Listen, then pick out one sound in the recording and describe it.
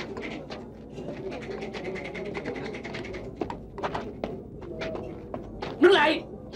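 A crowd murmurs and chatters in the background.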